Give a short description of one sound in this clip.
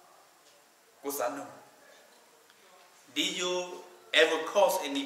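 A middle-aged man speaks slowly and solemnly into a microphone, in a room with some echo.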